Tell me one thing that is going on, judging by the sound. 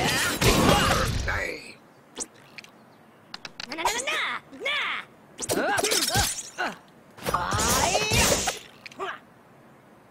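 Cartoonish battle sound effects of weapons striking and clashing ring out in short bursts.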